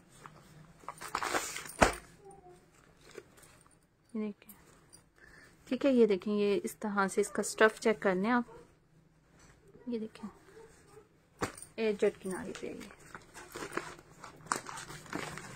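Cloth and plastic packaging rustle as they are handled.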